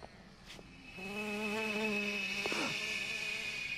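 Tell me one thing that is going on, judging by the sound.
A man groans as he is grabbed.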